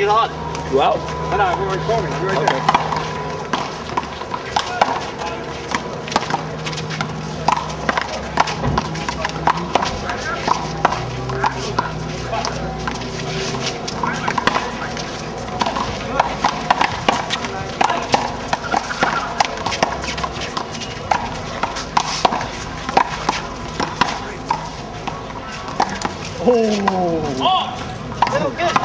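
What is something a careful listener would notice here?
A small rubber ball smacks sharply against a wall again and again.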